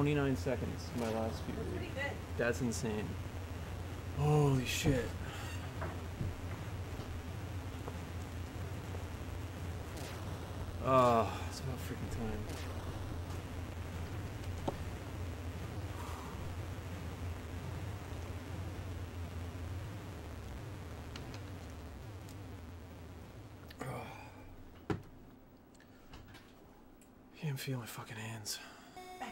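A man talks casually into a nearby microphone.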